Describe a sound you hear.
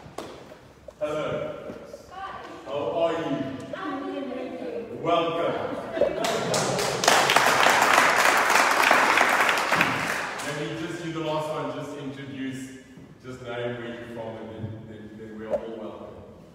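A man speaks loudly through a loudspeaker in an echoing hall.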